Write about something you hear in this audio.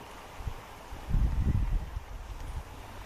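Water splashes as a child is dipped into a river.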